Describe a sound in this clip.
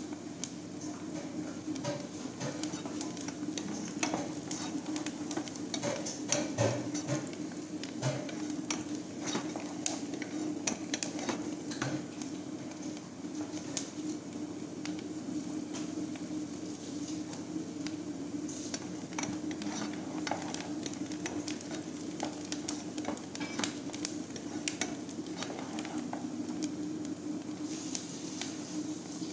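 A wooden spoon stirs and scrapes against a metal pot.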